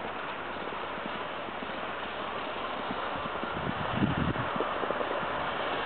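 A snowmobile engine drones in the distance.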